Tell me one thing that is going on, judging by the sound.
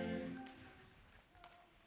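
A choir's last sung note fades away.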